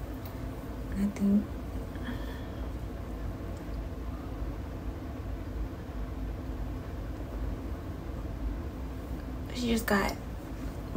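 A young woman speaks briefly and softly, close by.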